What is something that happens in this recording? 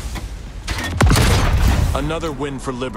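A heavy explosion booms and rumbles away.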